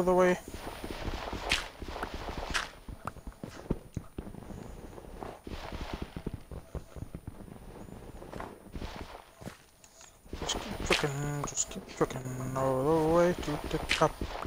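Dirt crunches in short bursts as blocks are dug away.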